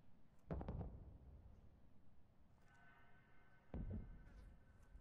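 Boots clank on metal ladder rungs during a climb.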